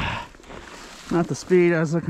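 A bubble-wrap sled slides over snow.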